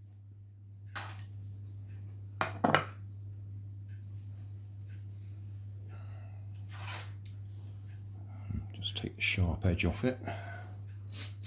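Small objects knock lightly as a hand sets them down on a wooden board.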